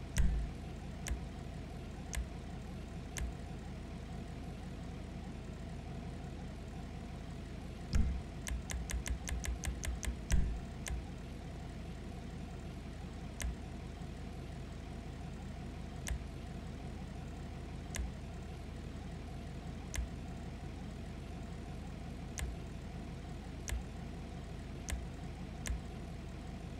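Short menu clicks tick now and then, with a quick run of clicks.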